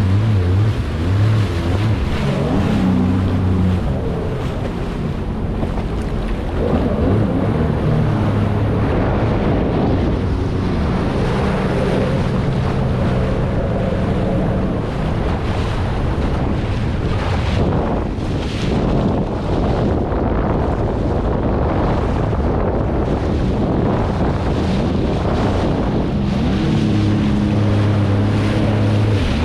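Water splashes and rushes against a hull.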